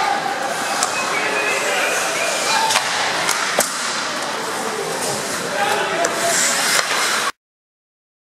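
Ice skates scrape and hiss across the ice.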